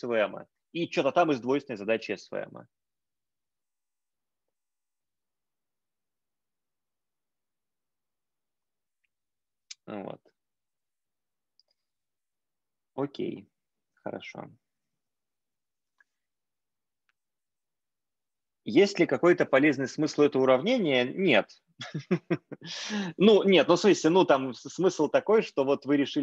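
A man lectures calmly over an online call, with pauses.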